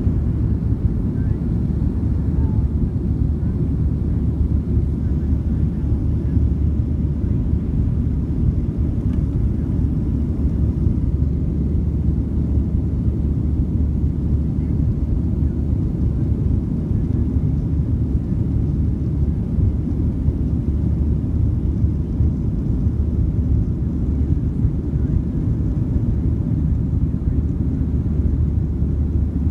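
Jet engines roar steadily and deeply inside an airplane cabin.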